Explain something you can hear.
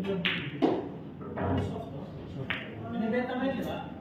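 Pool balls clack against each other.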